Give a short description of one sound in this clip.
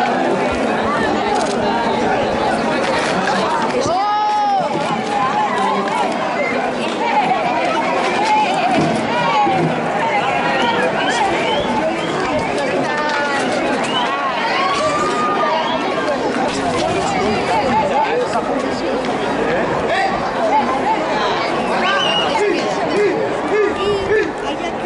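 A crowd of men and women shouts and chatters excitedly nearby.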